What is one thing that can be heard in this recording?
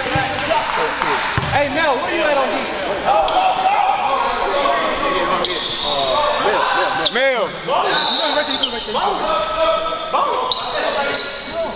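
Sneakers squeak sharply on a hardwood court, echoing in a large gym.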